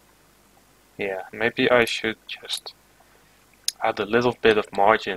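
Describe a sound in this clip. A young man talks calmly and close into a microphone.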